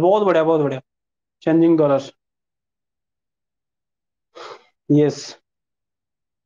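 A young man speaks calmly and close to the microphone, in short phrases with pauses.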